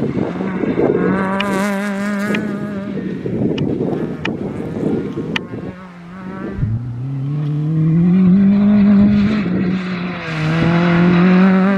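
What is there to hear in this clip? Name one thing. A second rally car engine revs and roars past.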